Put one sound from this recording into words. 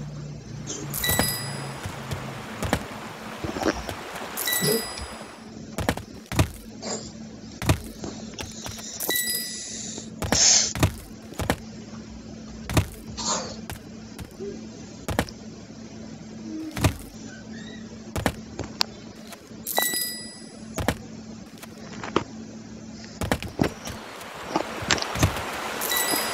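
A bright game chime rings as a coin is collected.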